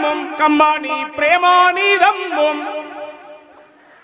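A man speaks loudly and with passion through a microphone and loudspeakers.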